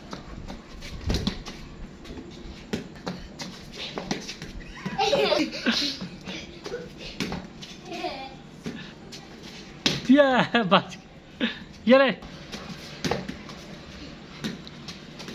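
A cricket ball bounces and knocks on a hard concrete floor.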